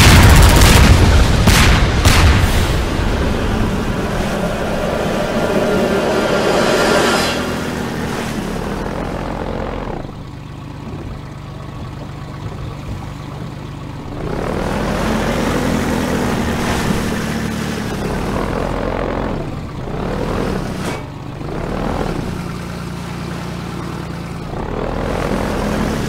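An airboat engine roars steadily.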